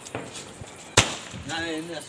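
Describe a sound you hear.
A firework fountain hisses and crackles.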